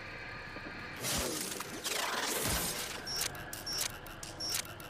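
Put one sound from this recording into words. A heavy mechanical vault door whooshes and whirs as it turns.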